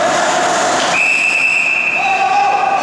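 A referee's whistle blows once, sharply.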